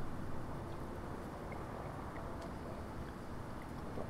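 A man sips a drink and swallows.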